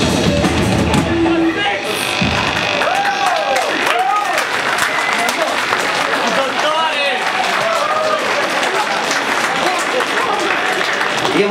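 Drums crash and pound loudly.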